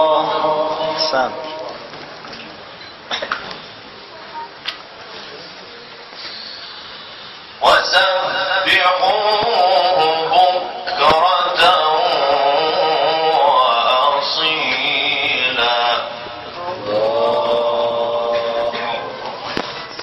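A young man chants a long melodic recitation through a microphone, echoing in a large room.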